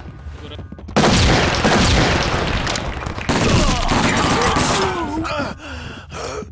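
Loud blasts and gunfire roar and echo through rooms.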